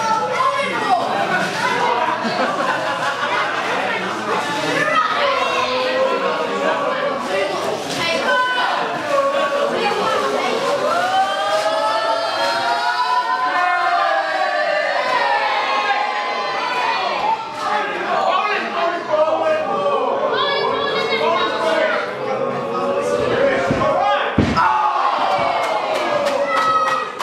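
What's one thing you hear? A crowd chants and cheers loudly in an echoing hall.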